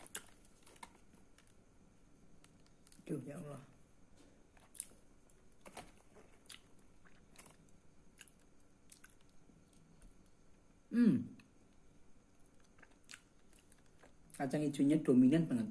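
A man chews and crunches on a crisp snack close by.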